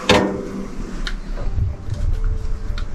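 A metal handle clicks as it is turned.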